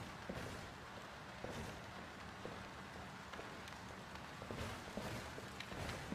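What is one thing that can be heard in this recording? Footsteps tread on a wooden floor.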